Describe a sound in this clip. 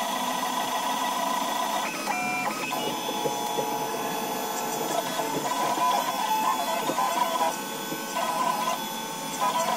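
Stepper motors whine and buzz in shifting tones as a 3D printer's head moves back and forth.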